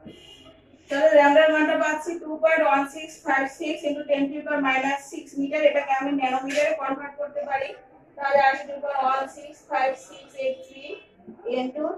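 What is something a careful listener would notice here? A woman speaks clearly and steadily, close by.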